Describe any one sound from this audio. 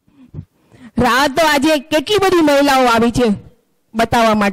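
A second middle-aged woman sings loudly through a microphone.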